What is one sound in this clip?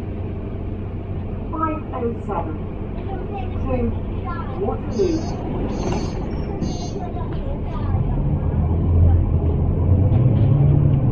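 A bus cabin rattles as it drives.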